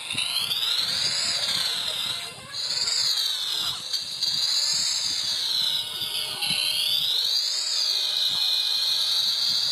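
A small motor engine whines steadily, rising and falling in pitch.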